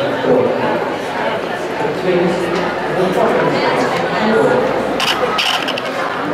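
Men and women talk in the background of a large, echoing hall.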